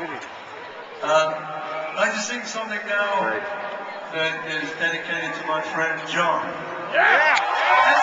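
An acoustic guitar strums through loudspeakers.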